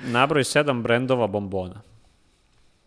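A young man speaks clearly and calmly into a close microphone.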